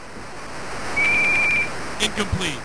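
A referee's whistle blows one short, sharp blast.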